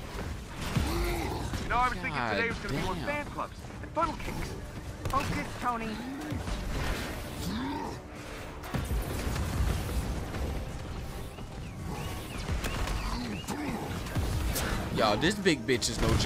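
Explosions and crashes boom from a video game.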